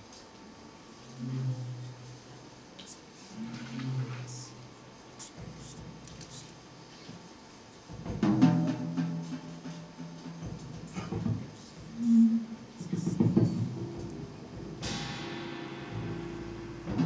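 A double bass plucks low notes.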